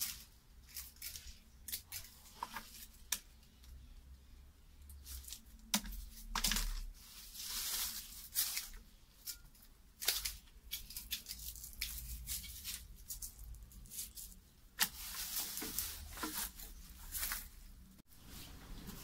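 Scissors snip through plant stems in short, sharp clicks.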